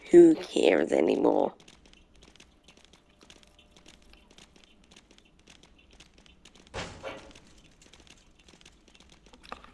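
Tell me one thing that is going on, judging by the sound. A goat's hooves patter quickly on pavement.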